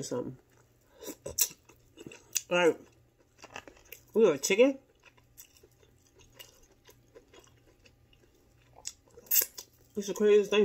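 Food crunches and smacks as a woman chews.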